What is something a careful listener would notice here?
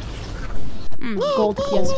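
Snorting creatures grunt and squeal.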